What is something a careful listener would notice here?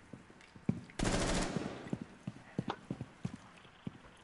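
Bullets strike a wall with sharp cracks.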